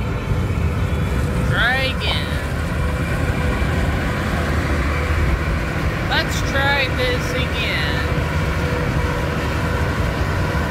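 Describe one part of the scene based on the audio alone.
Road noise rumbles steadily from inside a moving car.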